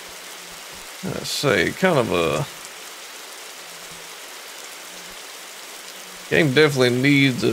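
A man speaks casually into a close microphone.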